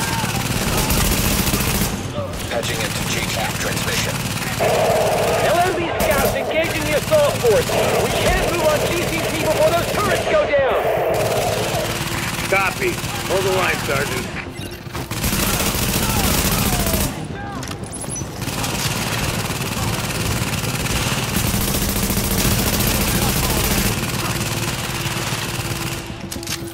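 Gunfire rattles in short bursts.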